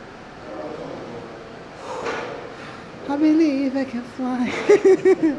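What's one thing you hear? A woman groans and grunts with effort close by.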